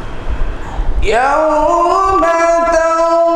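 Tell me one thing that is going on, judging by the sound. A man chants in a long, drawn-out melodic voice through a microphone.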